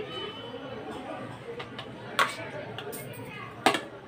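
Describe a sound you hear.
A spoon scrapes and taps against a plate.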